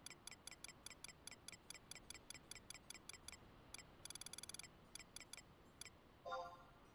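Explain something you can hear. Quick game menu ticks sound in a rapid series.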